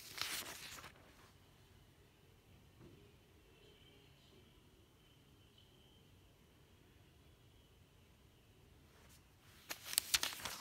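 Paper pages rustle and crinkle as they are turned.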